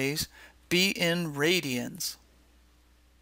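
A woman speaks clearly and with animation into a microphone.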